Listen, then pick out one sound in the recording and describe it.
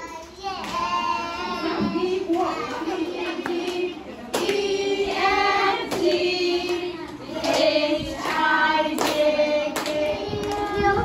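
A group of young children sing together.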